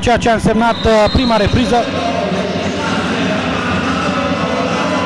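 A crowd of spectators murmurs in a large echoing hall.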